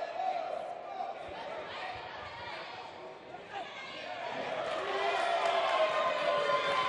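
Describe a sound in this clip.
A crowd cheers and murmurs in a large hall, growing louder.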